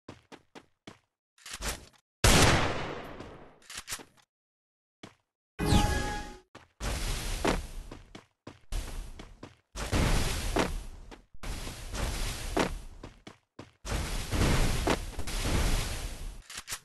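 Footsteps run quickly over grass and ground.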